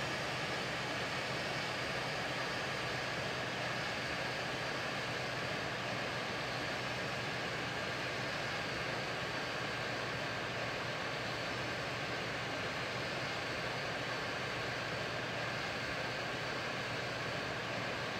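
Twin jet engines drone steadily in cruise.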